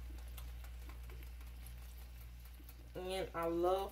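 Thick cream pours into a pan of pasta.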